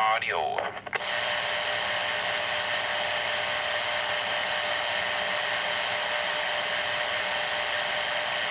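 Radio static hisses steadily from a handheld radio.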